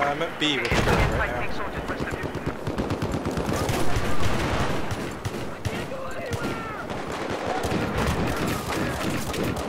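Rapid gunfire crackles in bursts.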